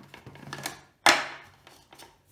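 A plastic lid clicks onto a blender.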